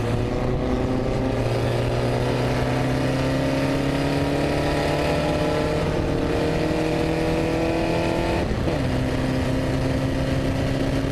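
A racing car engine roars loudly close by, rising steadily in pitch.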